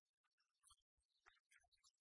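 A person claps hands in applause.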